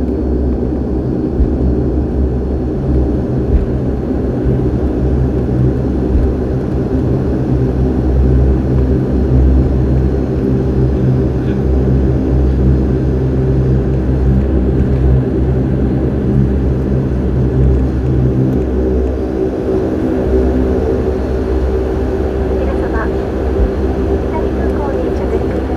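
Jet engines hum loudly and steadily inside an aircraft cabin.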